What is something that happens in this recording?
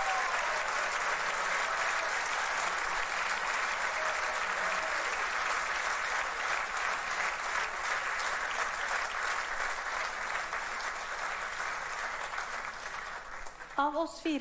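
A large audience applauds loudly.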